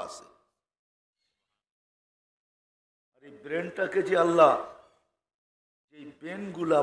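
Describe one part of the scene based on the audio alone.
An elderly man preaches with animation through a microphone, in bursts with pauses.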